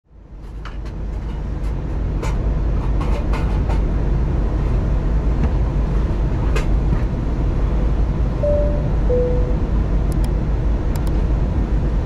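A jet engine drones with a steady low roar inside a plane cabin.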